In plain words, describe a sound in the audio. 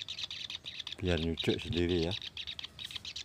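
A bird calls nearby with a few harsh, rising chirps.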